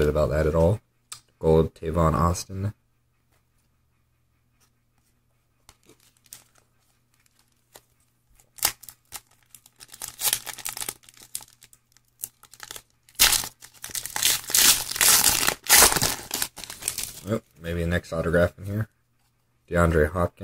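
Trading cards rub and flick against each other.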